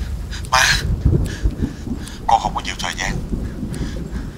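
A man speaks quietly and with distress into a phone.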